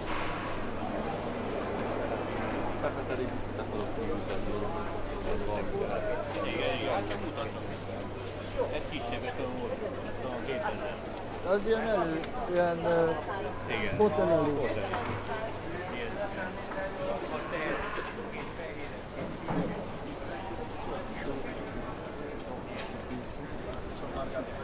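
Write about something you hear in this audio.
A crowd of shoppers murmurs and chatters in a large echoing hall.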